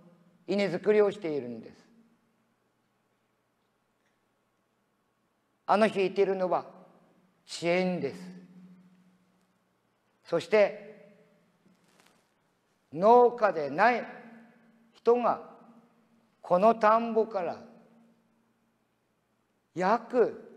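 An elderly man speaks slowly and thoughtfully, with long pauses.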